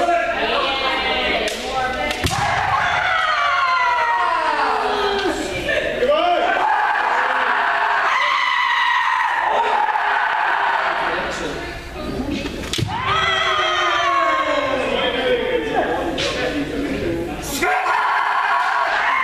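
Many men shout loud, long battle cries in a large echoing hall.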